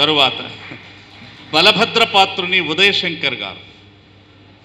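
A man speaks with animation into a microphone, heard through loudspeakers.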